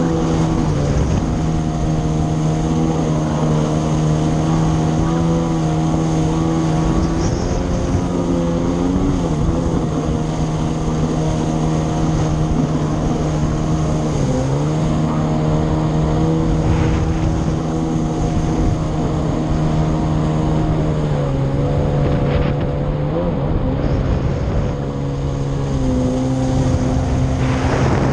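A jet ski engine drones loudly and steadily, changing pitch as it speeds up and slows.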